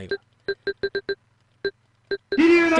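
Short electronic menu beeps sound in quick succession.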